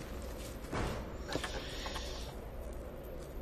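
A wooden crate lid creaks open.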